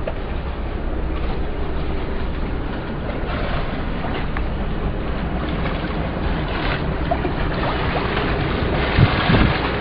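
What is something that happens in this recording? Water rushes along a boat's hull.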